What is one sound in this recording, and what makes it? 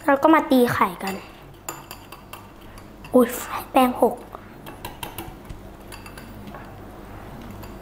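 A wire whisk clinks and scrapes quickly in a bowl.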